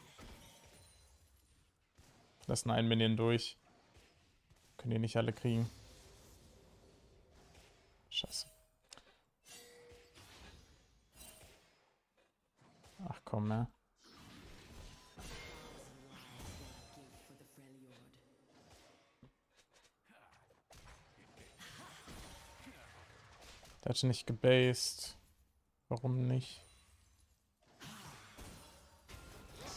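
Spell and weapon sound effects from a video game clash and whoosh.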